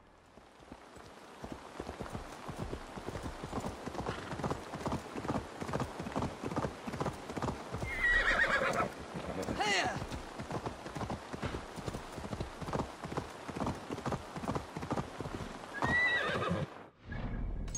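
Hooves clatter rapidly on a stone path as a horse gallops.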